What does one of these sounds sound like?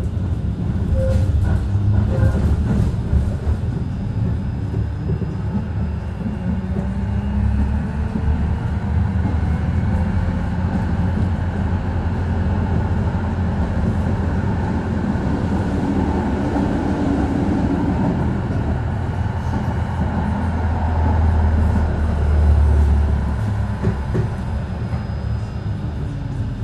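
Wheels rumble and rattle on the rails.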